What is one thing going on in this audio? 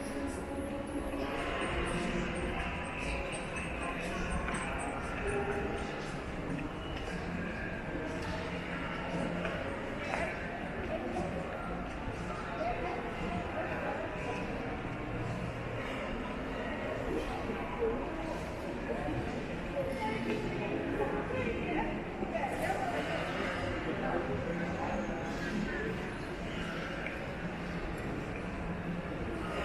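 A crowd chatters indistinctly in a large echoing hall.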